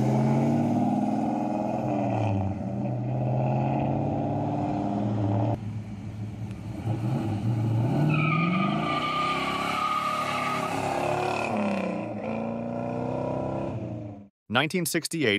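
A car engine rumbles loudly and revs up and down as the car drives off.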